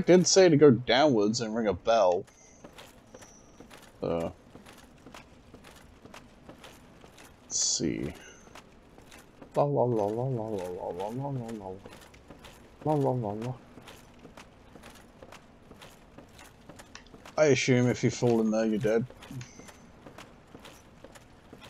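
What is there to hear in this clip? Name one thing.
Heavy armoured footsteps thud on wooden planks.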